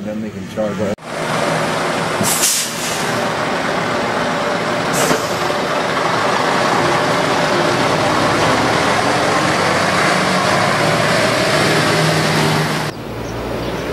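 A diesel truck engine rumbles close by as the truck pulls forward.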